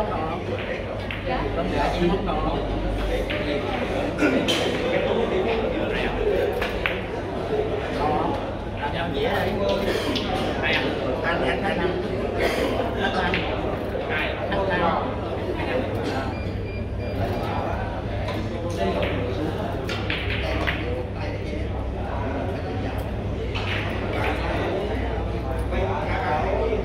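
Voices of many men murmur and chatter around a room.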